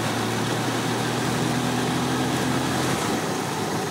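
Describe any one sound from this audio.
A motorcycle engine hums steadily, then drops away.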